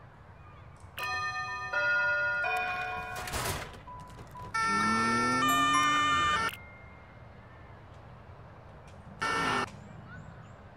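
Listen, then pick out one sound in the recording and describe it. Short electronic jingles and chimes play.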